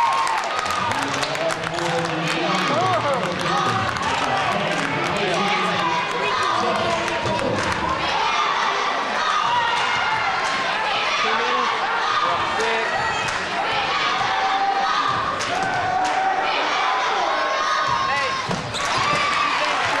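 Sneakers squeak on the hardwood.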